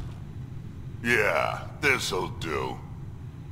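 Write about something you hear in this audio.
A man speaks in a deep, gravelly voice.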